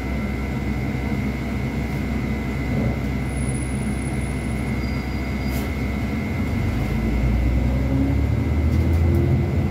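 A bus engine rumbles steadily and grows louder as the bus pulls away.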